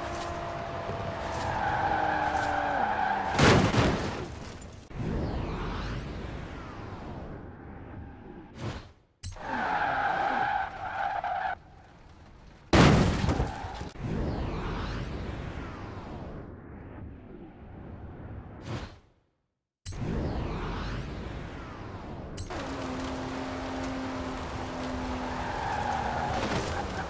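A racing car engine roars at high speed.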